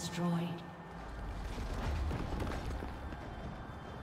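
A stone tower crumbles with a deep rumble.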